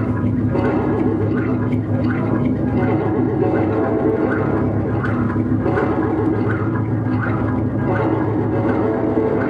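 Electronic music with a steady pulsing beat plays loudly.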